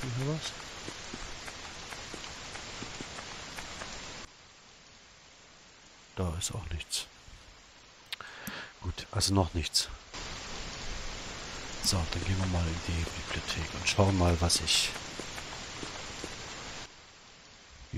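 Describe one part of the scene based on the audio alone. Steady rain pours down.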